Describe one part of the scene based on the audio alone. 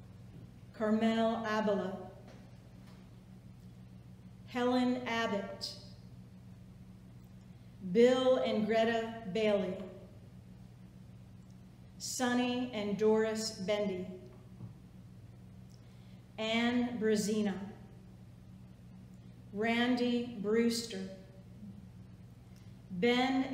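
A middle-aged woman reads aloud slowly in short phrases with pauses.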